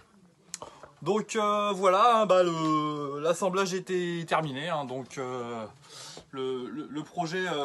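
A man speaks close by with animation.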